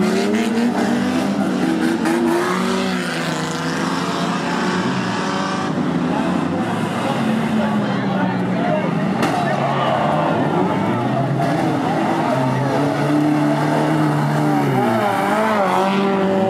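A large crowd cheers and shouts in the distance.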